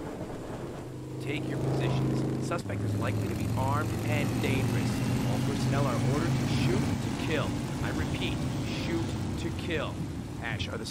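A motorcycle engine revs and roars.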